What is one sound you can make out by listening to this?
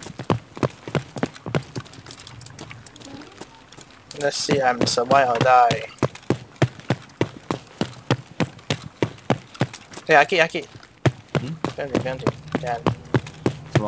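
Footsteps thud quickly and steadily on a hard floor.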